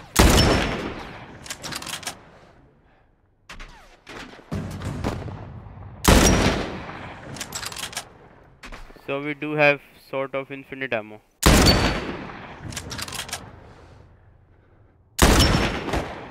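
A rifle fires loud single shots that echo away outdoors.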